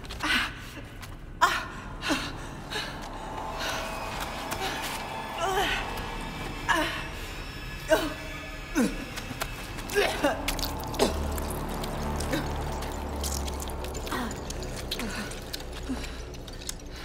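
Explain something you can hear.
A young woman groans and gasps in pain, close by.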